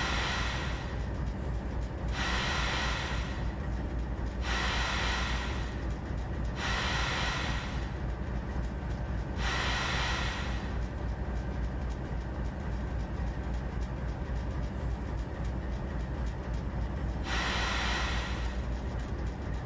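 Air brakes hiss in repeated bursts.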